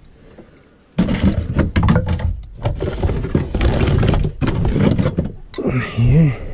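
Hands rummage through clutter, with things clattering and rustling.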